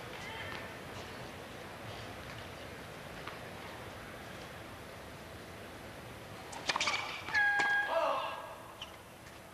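A crowd murmurs softly in a large open arena.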